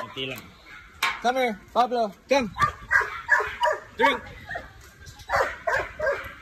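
A dog barks repeatedly.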